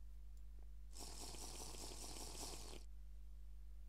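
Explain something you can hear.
Water is gulped down in quick swallows.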